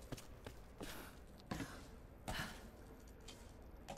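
Someone climbs a ladder with soft knocks.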